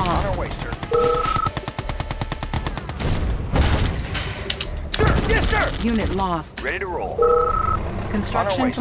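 A short electronic tone beeps twice.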